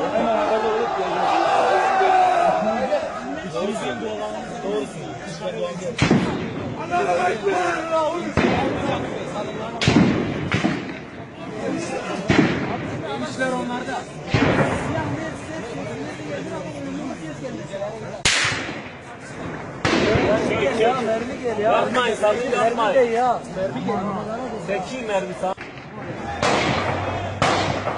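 A crowd of men shouts and talks excitedly close by, outdoors.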